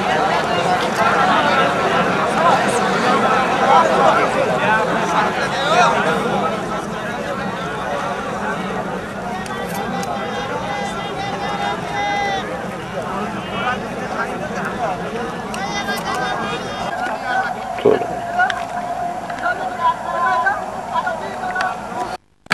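A large crowd of men chatters outdoors.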